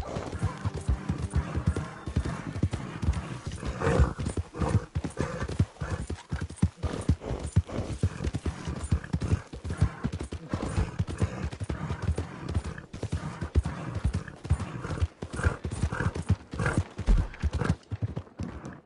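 Horse hooves thud rapidly on a dirt track.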